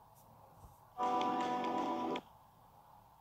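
A short electronic game tune plays briefly.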